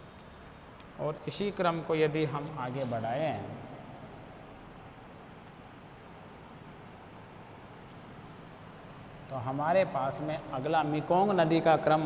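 A man speaks in a lecturing tone, heard through a microphone.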